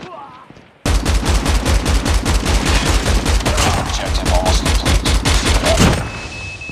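A rapid-fire gun fires in long, fast bursts.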